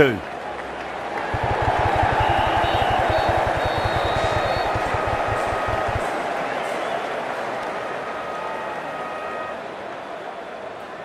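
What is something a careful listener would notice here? A large stadium crowd cheers loudly, then slowly dies down.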